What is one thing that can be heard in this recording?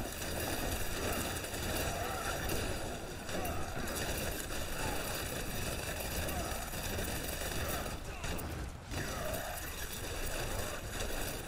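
Gunfire and energy blasts go off rapidly.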